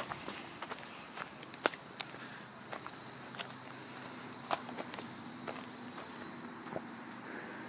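A dog's paws patter on a dirt path.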